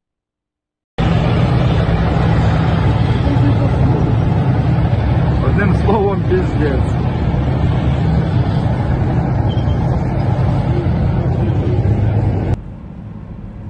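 Tank engines rumble loudly nearby.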